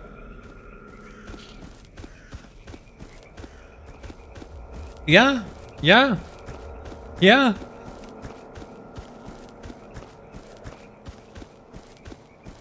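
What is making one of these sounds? Footsteps crunch on gravel at a steady pace.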